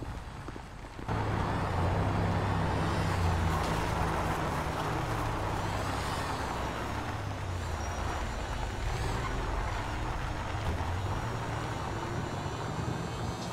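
A scooter engine drones steadily at speed.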